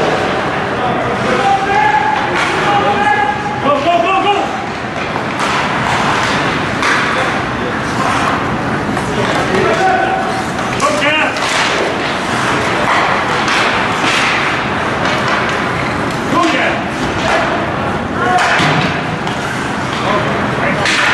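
Spectators shout and cheer in a large echoing arena.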